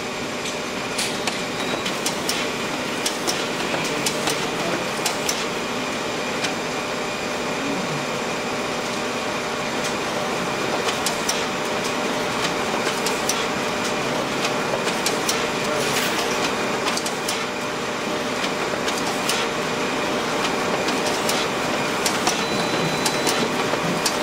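Sheets of paper rustle and flap as they are fed out quickly.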